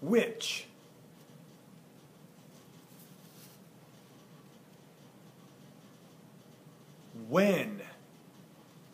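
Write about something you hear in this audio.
A man says a single word clearly and slowly, close by.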